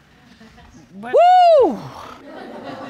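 A middle-aged woman lets out a long, loud exclamation that rises and falls in pitch.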